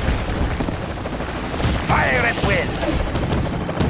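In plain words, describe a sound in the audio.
Rockets whoosh through the air.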